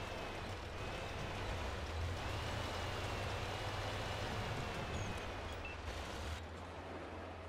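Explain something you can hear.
A tank engine rumbles and clanks as the tank drives over the ground.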